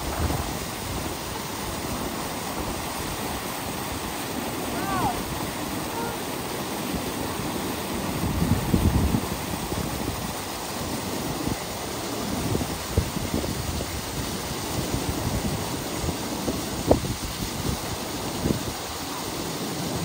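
A small waterfall rushes into a rocky pool.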